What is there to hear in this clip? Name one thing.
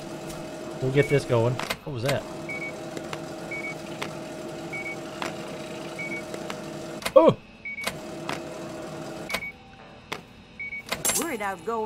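A checkout scanner beeps sharply each time an item is scanned.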